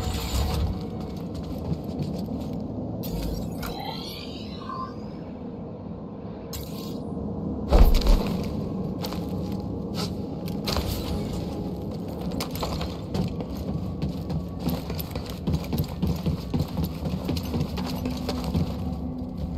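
Footsteps run across a metal floor.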